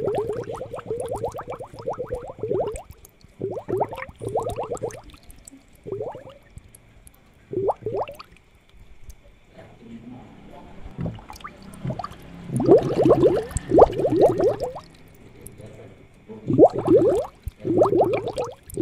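Water bubbles and gurgles in a fish tank.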